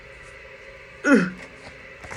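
A young woman lets out a short laugh close by.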